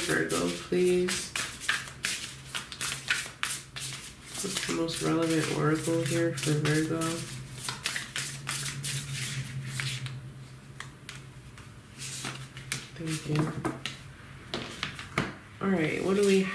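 Playing cards riffle and flick rapidly as a deck is shuffled.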